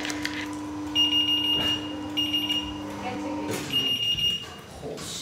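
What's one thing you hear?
A security gate beeps in short repeated high tones.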